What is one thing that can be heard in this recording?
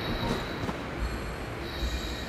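A magical whoosh sounds briefly.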